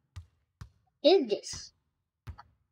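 A young boy says a few words close to a microphone.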